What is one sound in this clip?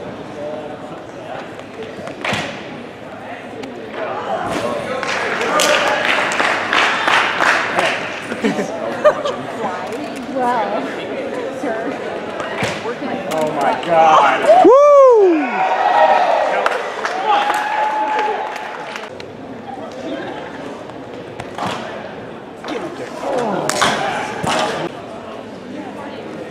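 A crowd of men and women chatters and cheers in a large echoing hall.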